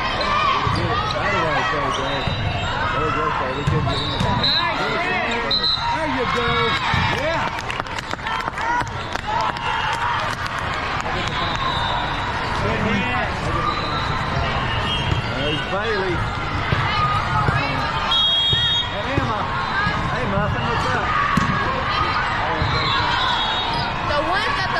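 Many voices chatter and call out throughout a large echoing hall.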